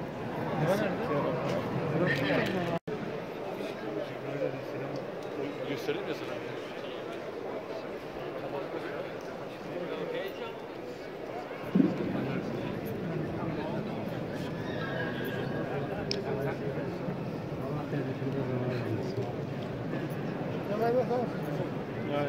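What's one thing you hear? A large crowd murmurs and chatters in a big echoing hall.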